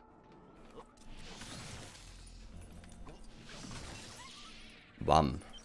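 A lightsaber swings with a whooshing hum.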